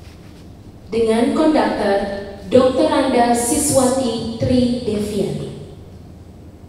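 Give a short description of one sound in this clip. A large choir sings together in an echoing hall.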